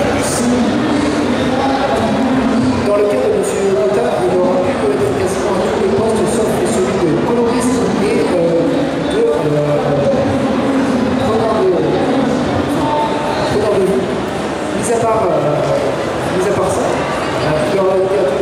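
A second man speaks calmly into a microphone over loudspeakers.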